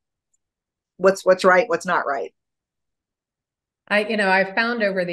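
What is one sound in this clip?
A middle-aged woman speaks warmly over an online call.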